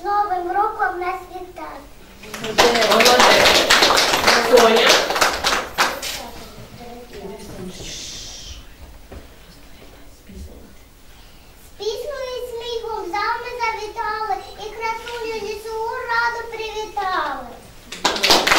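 A young girl recites in a high, clear voice close by.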